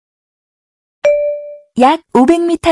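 A navigation device sounds a short alert chime.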